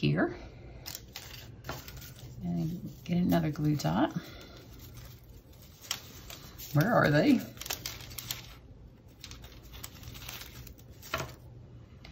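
Adhesive tape crackles as it is pulled from a roll.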